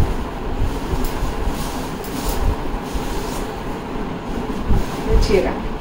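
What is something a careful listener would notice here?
Silk fabric rustles as it is unfolded and shaken out.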